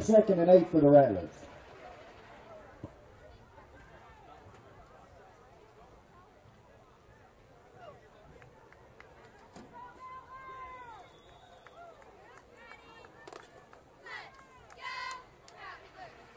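Boys and men shout and call out across an open field, heard from a distance.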